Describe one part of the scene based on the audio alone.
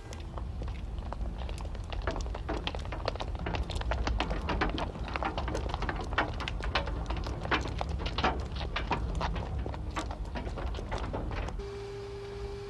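Footsteps click on hard ground outdoors.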